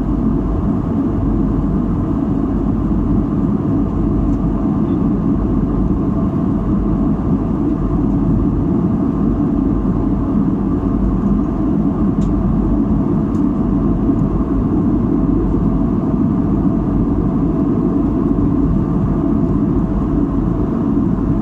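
Jet engines roar with a steady, low rumble, heard from inside an airliner cabin.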